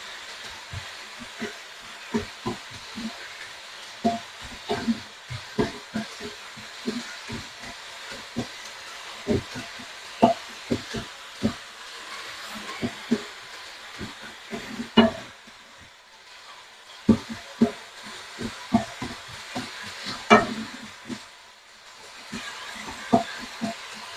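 A wooden spoon scrapes and knocks against a pan as food is stirred.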